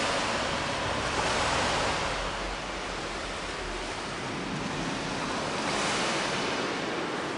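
Water rushes and swirls as dolphins swim past underwater.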